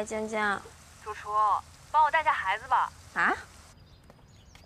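A young woman speaks with feeling, close by.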